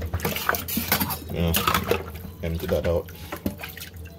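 Water splashes in a metal sink.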